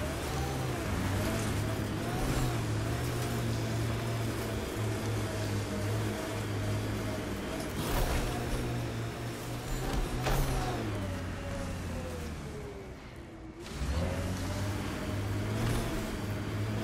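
A vehicle engine hums steadily and changes pitch as it drives.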